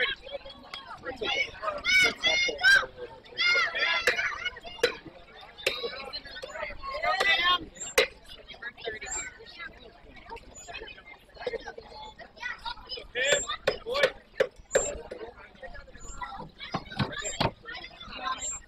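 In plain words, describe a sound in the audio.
Children shout and chant loudly outdoors.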